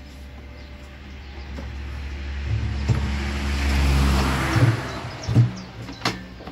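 A plastic lid clunks onto a metal drum.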